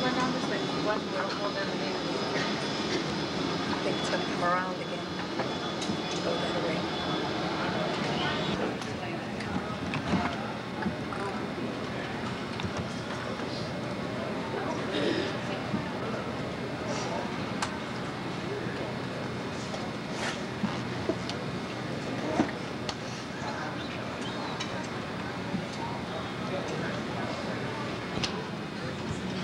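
Jet engines roar steadily outdoors.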